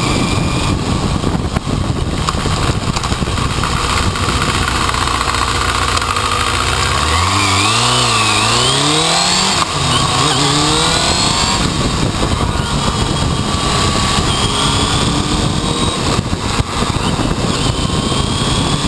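A motorcycle engine runs close by, rising and falling in pitch as it speeds up and shifts gears.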